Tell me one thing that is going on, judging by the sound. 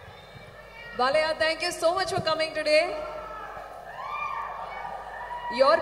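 A young woman speaks with animation into a microphone, heard through loudspeakers.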